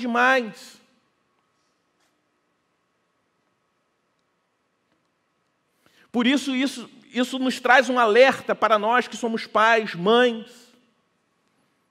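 A man speaks with animation through a headset microphone, pausing between phrases.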